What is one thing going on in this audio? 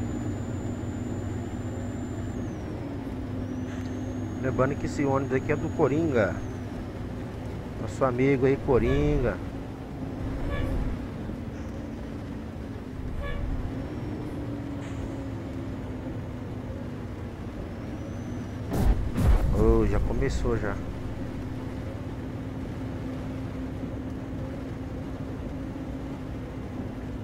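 Rain patters on a bus windscreen.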